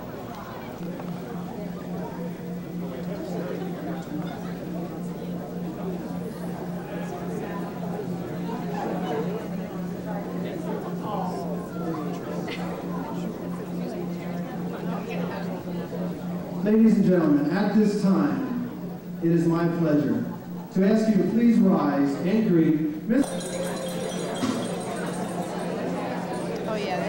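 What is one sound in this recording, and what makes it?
A crowd of guests murmurs and chatters in a large room.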